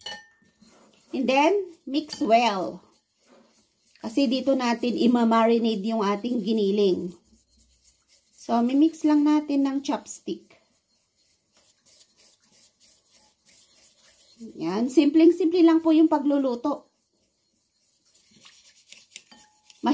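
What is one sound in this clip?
Chopsticks scrape and clink against a ceramic bowl.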